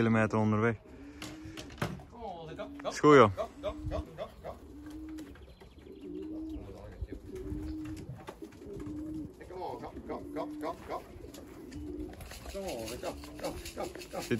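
Pigeons coo softly and repeatedly close by.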